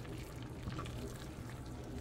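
A masher squishes soft potatoes.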